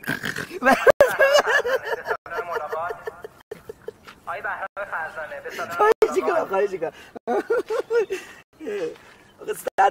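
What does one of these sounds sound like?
A young man laughs loudly up close.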